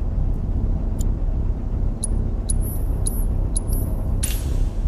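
Short electronic menu beeps sound several times.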